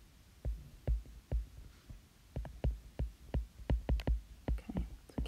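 A stylus taps on a tablet while writing.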